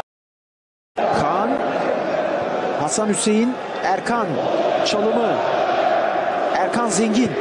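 A large stadium crowd roars and chants in the distance.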